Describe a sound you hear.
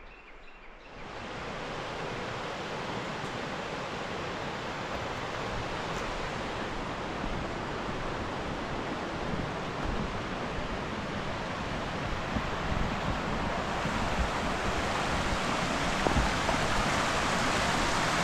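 A stream rushes steadily over rocks nearby.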